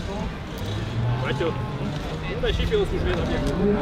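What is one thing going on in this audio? A man speaks loudly outdoors, a little way off.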